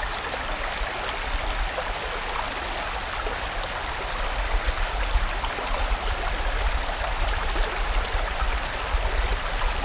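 A stream rushes and splashes steadily over rocks.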